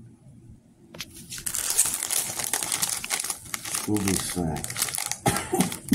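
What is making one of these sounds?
A plastic wrapper crinkles in a man's hands.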